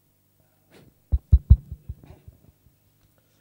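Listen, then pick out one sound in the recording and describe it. A microphone thumps and bumps as it is handled.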